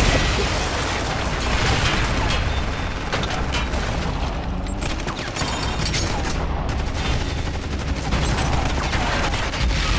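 An explosion bursts with a heavy roar.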